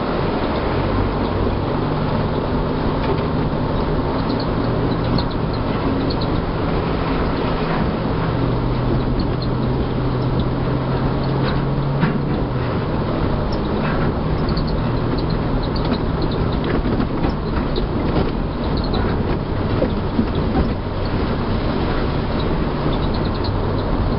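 A vehicle engine rumbles steadily while driving off-road.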